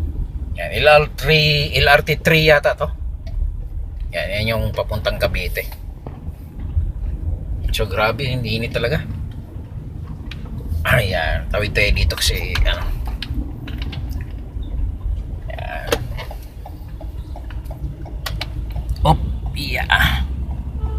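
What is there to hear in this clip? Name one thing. A car engine hums low and steady from inside a moving car.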